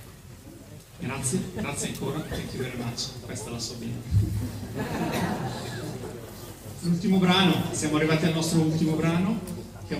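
A brass band starts playing music in a large echoing hall.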